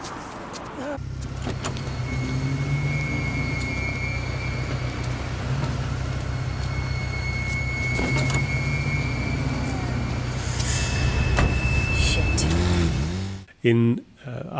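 A motorcycle engine idles with a low, steady rumble nearby.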